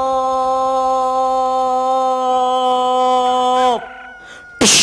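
A chorus of men and women sings a long held note.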